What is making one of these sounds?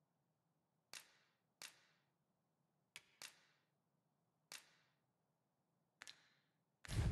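Soft clicks sound one after another.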